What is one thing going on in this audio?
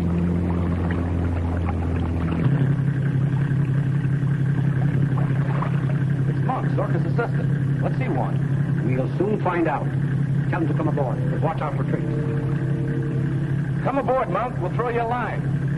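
A motorboat engine drones over choppy water.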